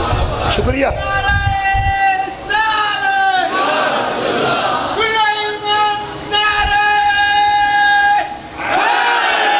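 A man chants in a long, sustained wailing tone through a microphone.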